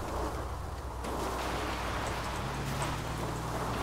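Tyres rumble over rough ground.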